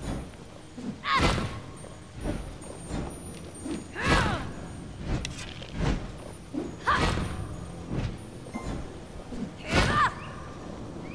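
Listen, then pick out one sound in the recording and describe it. Short game menu chimes ring out every second or two.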